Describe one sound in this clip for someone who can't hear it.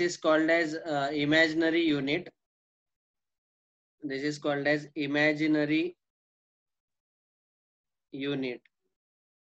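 A young man speaks calmly into a close microphone, explaining in short bursts with pauses.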